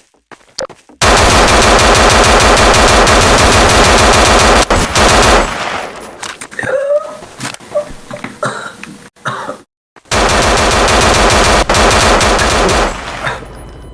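An automatic rifle fires rapid bursts at close range.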